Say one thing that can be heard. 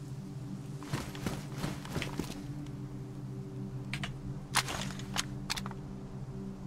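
A rifle clicks and rattles as it is picked up and handled.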